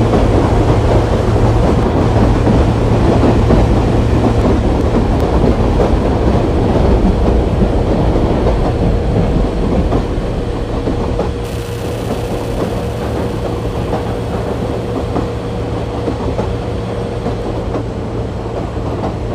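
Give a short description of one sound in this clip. A locomotive engine rumbles steadily as a train rolls along.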